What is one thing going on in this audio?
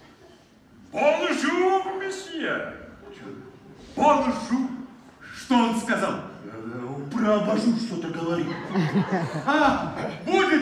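A man speaks with animation on a stage, in a large echoing hall.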